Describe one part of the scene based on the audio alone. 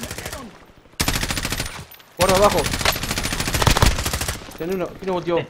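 An automatic rifle fires rapid bursts at close range.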